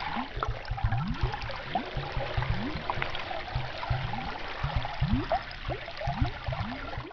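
Water hisses and crackles steadily, heard from underwater.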